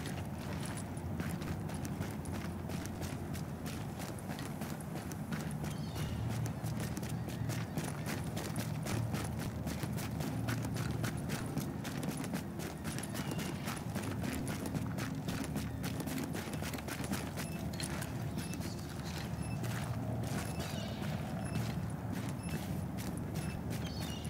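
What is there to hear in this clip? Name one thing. Boots crunch steadily through snow.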